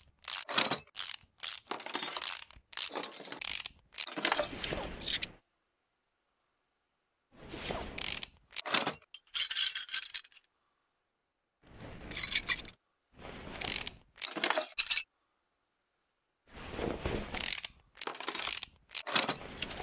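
A ratchet wrench rattles as bolts are unscrewed.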